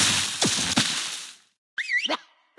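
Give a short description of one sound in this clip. Cartoon game pieces burst with a bright whooshing crash.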